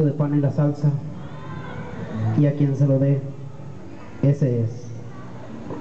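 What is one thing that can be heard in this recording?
A man speaks slowly and solemnly, as if performing, in a slightly echoing space.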